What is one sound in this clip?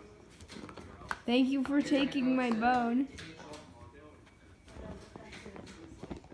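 A dog chews and gnaws on a toy.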